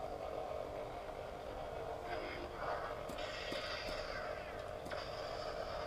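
A toy lightsaber hums steadily.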